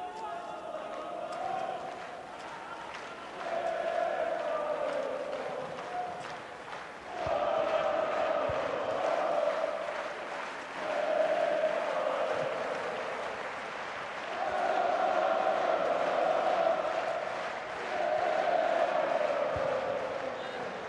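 A crowd of fans chants and sings in a stadium, in waves.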